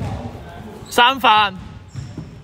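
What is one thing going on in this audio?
A referee's whistle blows sharply once in an echoing hall.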